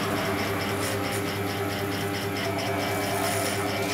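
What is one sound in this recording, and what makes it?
Electric hair clippers buzz close by.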